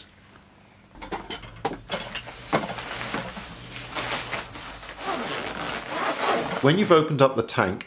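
A nylon jacket rustles and crinkles as it is handled.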